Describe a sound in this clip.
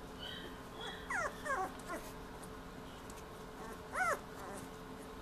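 Young puppies whine in high-pitched squeaks.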